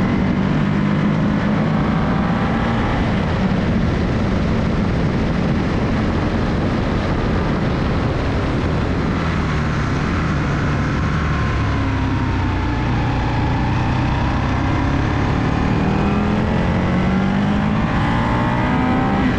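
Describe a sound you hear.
A motorcycle engine rumbles steadily, rising and falling in pitch as it speeds up and slows down.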